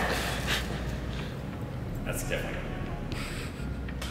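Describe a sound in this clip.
Footsteps walk across a hard floor in a large echoing room.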